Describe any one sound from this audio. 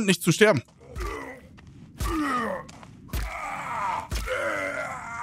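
A wooden club strikes a body with heavy thuds.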